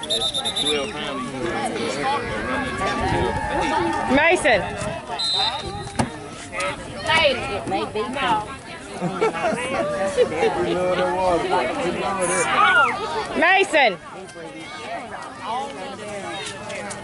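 A crowd of children and adults shout and cheer outdoors.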